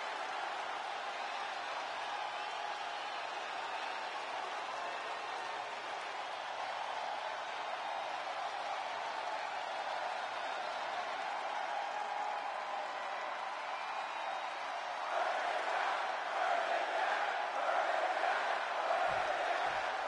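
A large crowd cheers and roars in an echoing arena, growing louder near the end.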